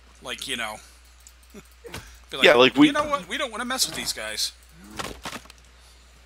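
An axe chops into wood with sharp knocks.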